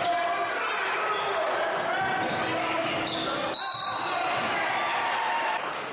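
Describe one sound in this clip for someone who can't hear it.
A crowd cheers and chatters loudly in an echoing gym.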